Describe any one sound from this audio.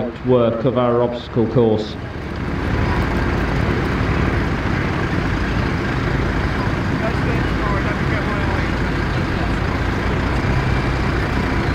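Heavy truck engines rumble and labour as the trucks drive over rough ground.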